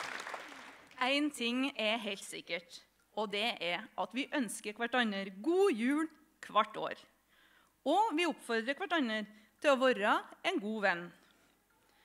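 A woman speaks warmly into a microphone on a stage.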